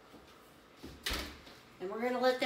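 An oven door thuds shut.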